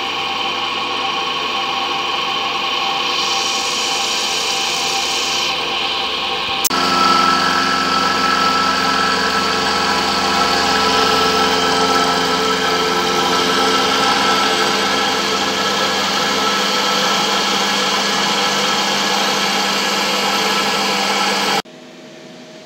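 A milling machine cutter grinds steadily through metal with a high, whining screech.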